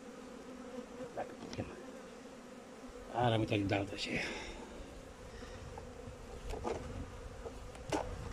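Honeybees buzz as they swarm over an open hive.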